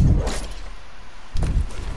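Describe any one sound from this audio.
Footsteps thud as a game character runs.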